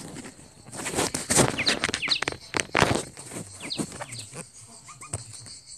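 A small bird chirps.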